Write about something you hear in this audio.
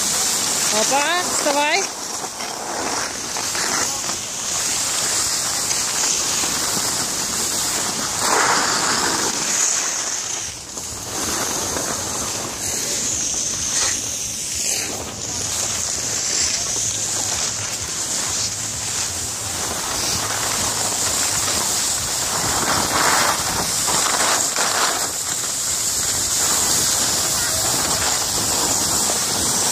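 Skis scrape and hiss steadily over packed snow.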